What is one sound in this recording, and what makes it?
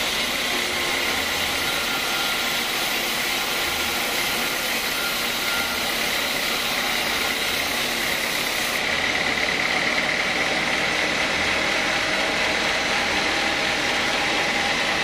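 A band saw whines loudly as it cuts through a thick timber beam.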